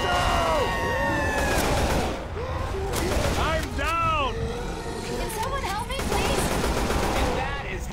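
A rifle fires in short bursts.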